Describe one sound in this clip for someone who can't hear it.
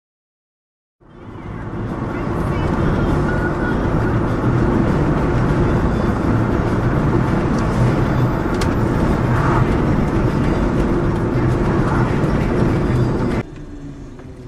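Tyres rumble on a road.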